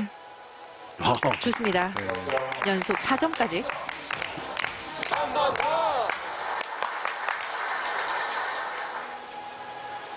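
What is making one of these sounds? A small group claps and cheers.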